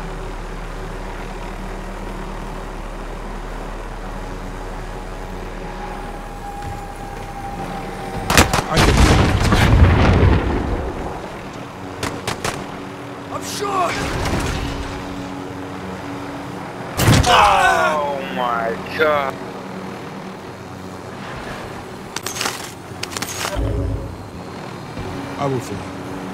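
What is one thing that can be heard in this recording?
A helicopter's rotor thrums steadily.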